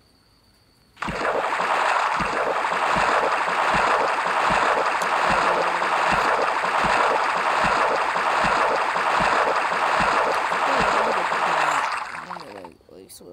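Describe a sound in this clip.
Water splashes steadily as a swimmer moves through it.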